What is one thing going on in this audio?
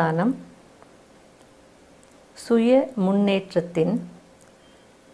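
A middle-aged woman speaks calmly and slowly into a close microphone.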